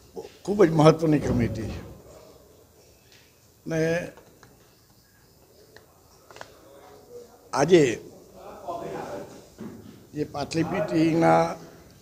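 A middle-aged man speaks calmly into microphones close by, with pauses.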